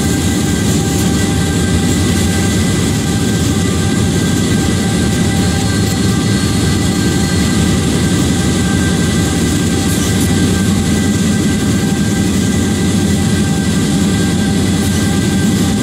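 Train wheels roll and clatter on the rails.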